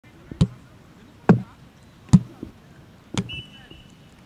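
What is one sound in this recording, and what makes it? A football thuds repeatedly as it bounces off concrete steps.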